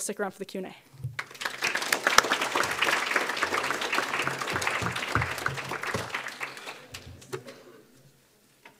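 A crowd of people claps and cheers in a room.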